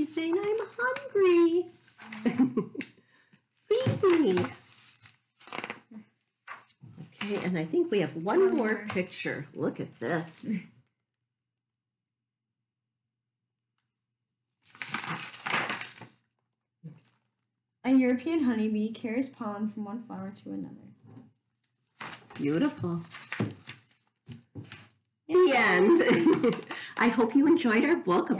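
A woman talks calmly and warmly close by.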